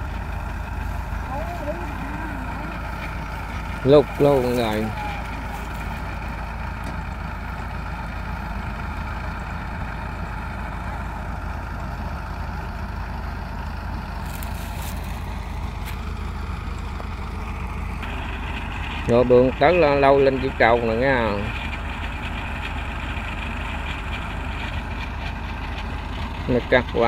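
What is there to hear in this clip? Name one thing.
A combine harvester engine rumbles steadily nearby.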